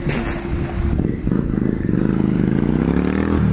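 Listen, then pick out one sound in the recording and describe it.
A motorcycle engine rumbles close by and revs up.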